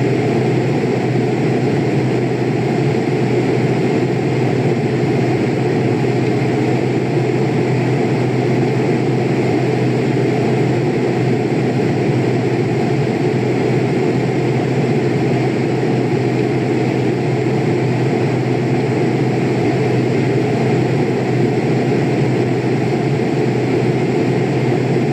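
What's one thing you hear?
Jet engines drone steadily.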